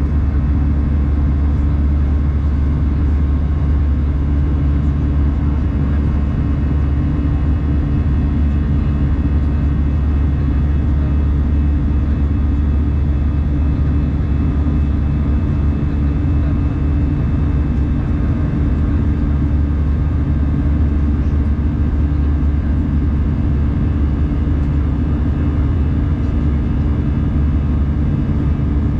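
A jet engine roars steadily and loudly, heard from inside an airliner cabin.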